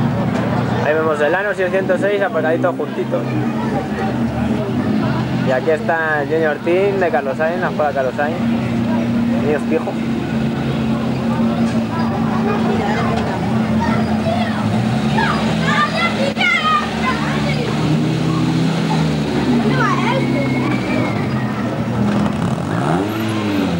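Rally car engines idle and rumble nearby.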